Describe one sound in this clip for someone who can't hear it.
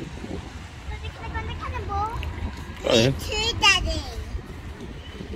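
A young child calls out in a high voice close by.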